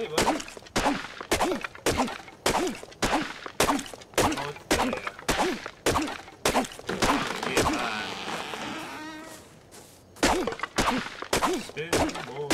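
A hatchet chops rhythmically into a tree trunk with hard thuds.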